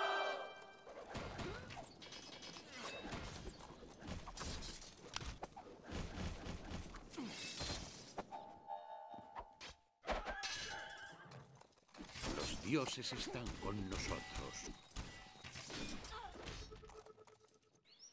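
Swords clash and clang in a busy battle.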